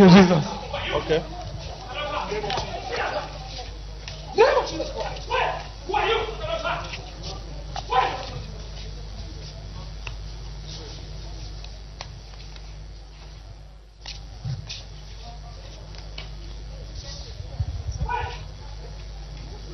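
A crowd of men and women talk and call out nearby.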